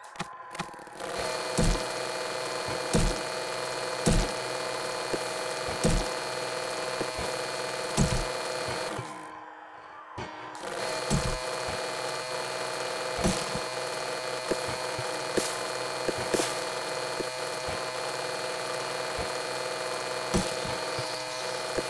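A motor drill whirs steadily as it grinds through rock.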